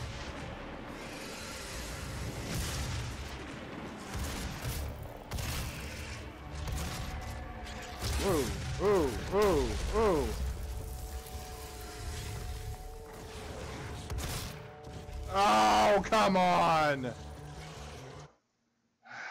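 Gunfire and explosions boom from a video game.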